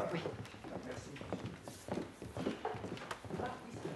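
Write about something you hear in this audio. Footsteps tread on a wooden floor.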